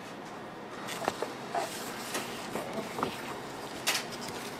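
A paper bag rustles as a box slides into it.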